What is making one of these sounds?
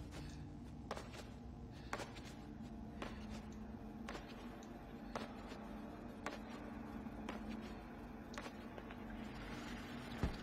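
Small footsteps patter.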